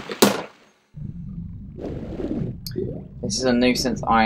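Water swishes and gurgles as a swimmer strokes underwater.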